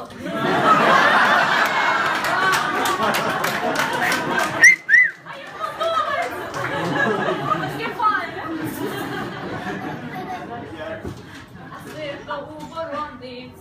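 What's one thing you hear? A crowd of people chatters loudly indoors.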